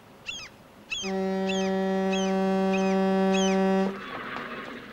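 A ship's horn blows a long, steady blast.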